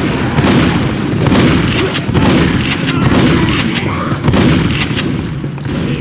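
A shotgun fires loud blasts in quick succession.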